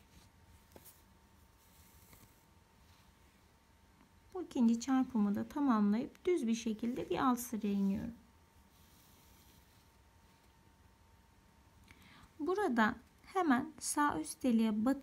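Thread rasps softly as it is pulled through coarse fabric.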